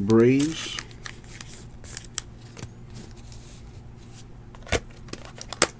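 Trading cards rustle and click as hands shuffle them.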